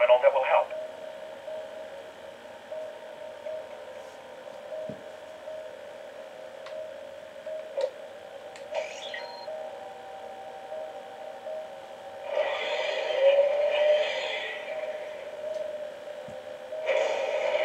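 Electronic game music plays steadily.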